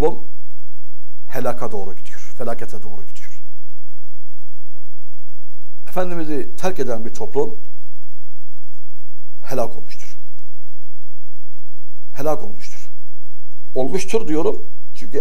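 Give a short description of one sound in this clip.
An elderly man speaks calmly and deliberately into a close microphone, with long pauses.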